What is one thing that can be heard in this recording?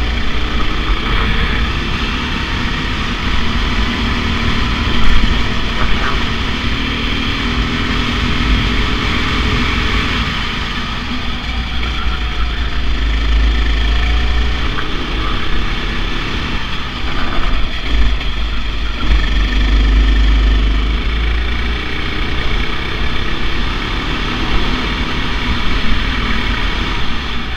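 A go-kart engine buzzes loudly up close, rising and falling in pitch as the kart speeds through corners.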